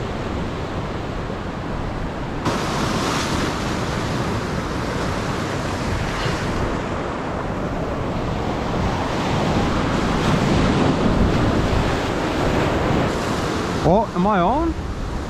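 Waves crash and wash over rocks close by.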